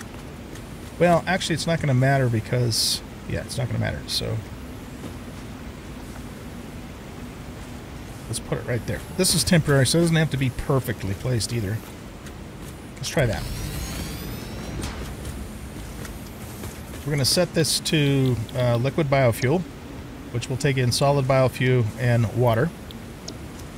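A middle-aged man talks calmly and close to a headset microphone.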